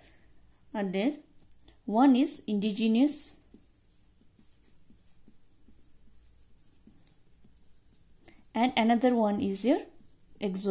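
A felt-tip marker scratches softly across a smooth surface.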